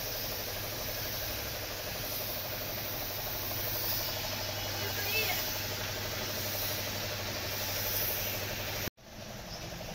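A paint spray gun hisses steadily.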